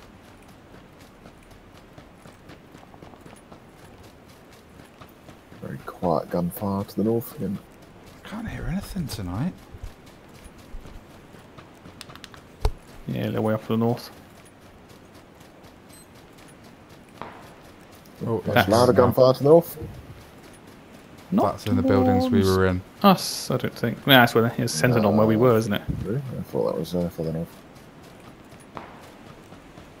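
Footsteps rustle through grass at a steady running pace.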